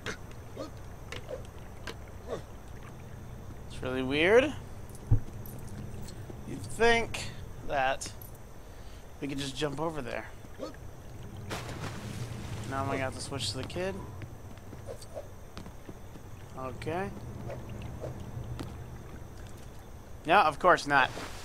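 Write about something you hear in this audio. Water splashes as a figure wades through a stream.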